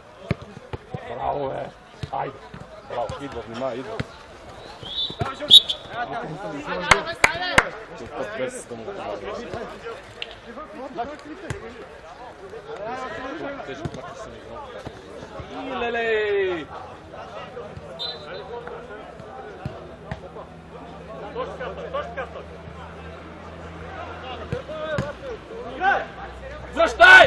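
Men shout to each other across an outdoor football pitch.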